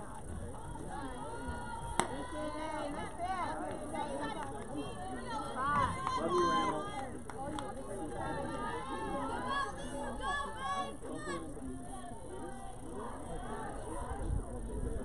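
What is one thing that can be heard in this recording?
Young women shout and chant cheers across an open field.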